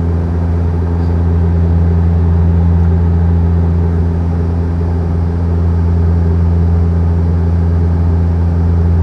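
A steady, low engine drone fills an airliner cabin in flight.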